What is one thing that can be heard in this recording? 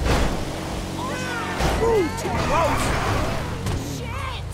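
Tyres screech as a racing car skids.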